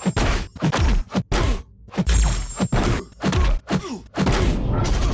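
Heavy punches and blade strikes land in quick bursts of loud impacts.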